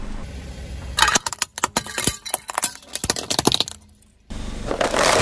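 Glass shatters and tinkles under a car tyre.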